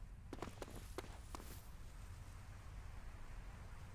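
Footsteps thud quickly on dusty ground.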